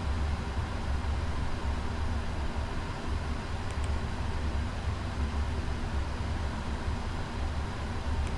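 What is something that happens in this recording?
Jet engines drone low and steady inside a cockpit.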